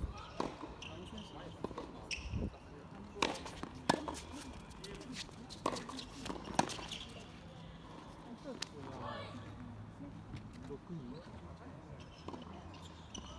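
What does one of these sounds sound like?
Tennis shoes squeak and scuff on a hard court.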